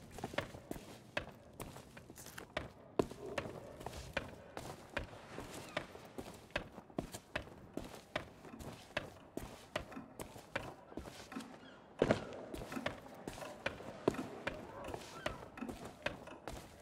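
Footsteps tap steadily on stone.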